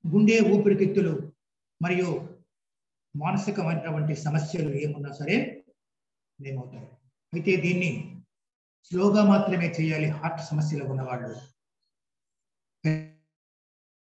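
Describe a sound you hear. A middle-aged man speaks with animation close to the microphone.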